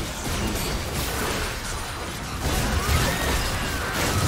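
Game characters strike each other with sharp hits.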